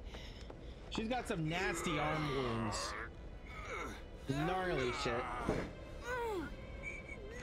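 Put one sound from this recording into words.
A young man talks with animation, close to a microphone.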